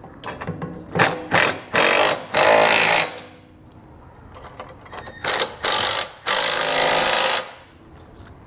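A cordless impact driver whirs in short loud bursts.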